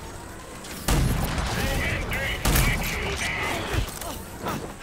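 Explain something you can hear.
A heavy gun fires loud blasts.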